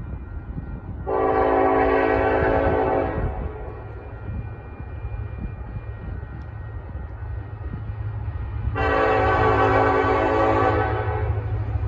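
A diesel locomotive sounds two long blasts on its air horn.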